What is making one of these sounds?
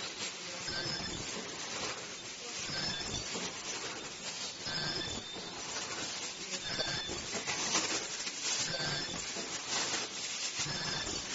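A machine hums and clatters steadily with a repeating rhythm.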